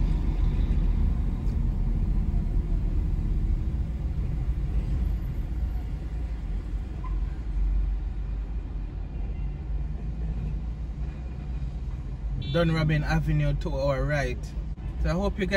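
A car engine and tyres rumble low and steady from inside the car.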